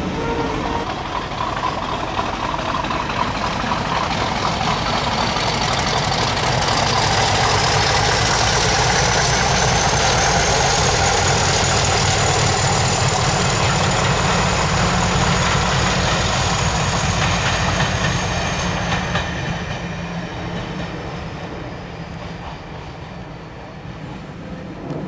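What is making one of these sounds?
A Class 50 diesel locomotive passes, working hard under power.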